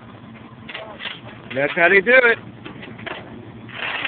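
A metal chain rattles and clanks.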